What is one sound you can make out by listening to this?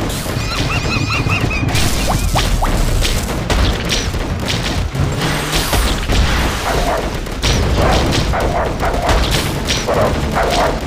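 Game turrets fire rapid shots and blasts.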